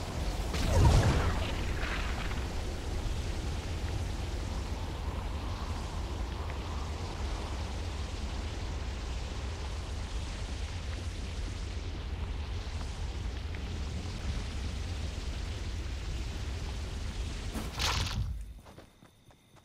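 Wind rushes loudly and steadily past a fast glider.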